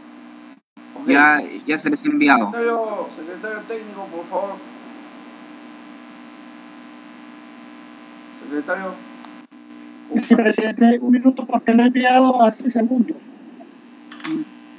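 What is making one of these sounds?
An older man speaks calmly through an online call.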